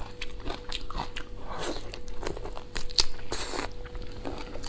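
A young woman slurps and sucks up food.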